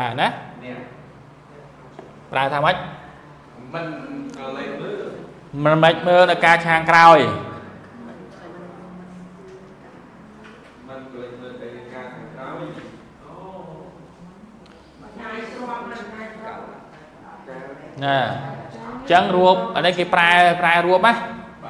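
A man lectures with animation through a microphone and loudspeakers.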